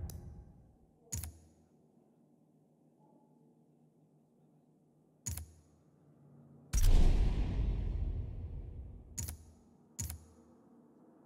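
Short menu selection clicks sound now and then.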